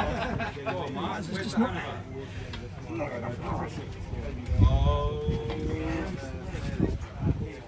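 Men talk with animation close by.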